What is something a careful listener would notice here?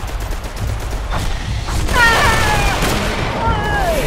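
A flamethrower roars out a burst of fire.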